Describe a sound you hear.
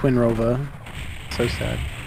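A shotgun blasts in a video game.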